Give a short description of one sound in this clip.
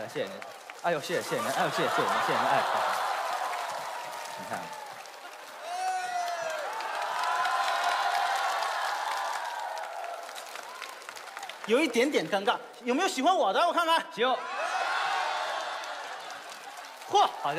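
A crowd of women cheers and screams in a large hall.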